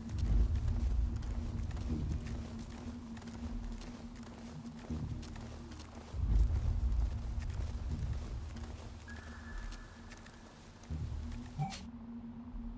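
Dry branches rustle and crackle as someone pushes through thick brush.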